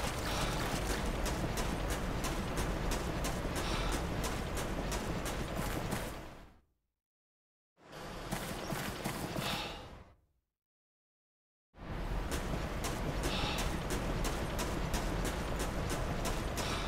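Footsteps run quickly and steadily over gravel.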